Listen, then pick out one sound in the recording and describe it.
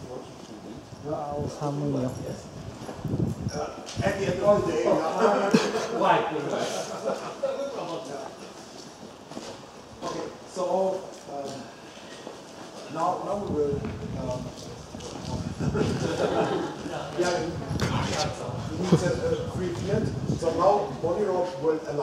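A man speaks to a small group nearby.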